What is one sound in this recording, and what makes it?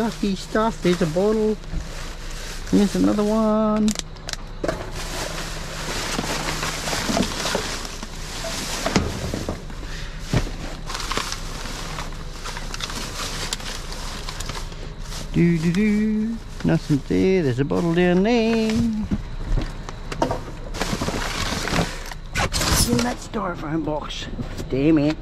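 Plastic bags rustle and crinkle close by.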